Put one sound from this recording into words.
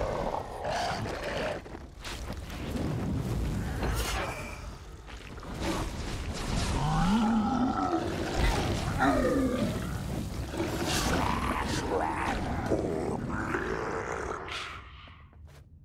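Magic blasts crackle and boom in a fight.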